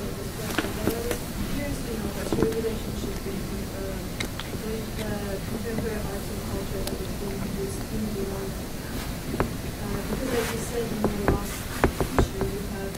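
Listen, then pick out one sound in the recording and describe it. A man speaks calmly in a room, slightly distant.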